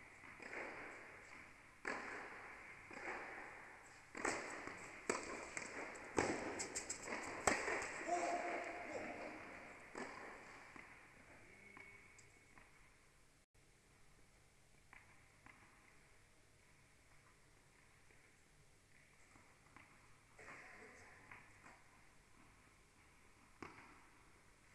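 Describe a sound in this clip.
Tennis balls are struck with rackets, echoing in a large indoor hall.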